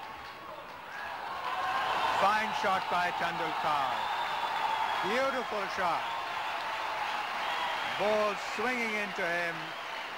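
A large crowd cheers loudly outdoors, swelling up.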